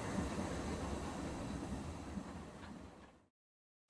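Steam hisses softly from a locomotive.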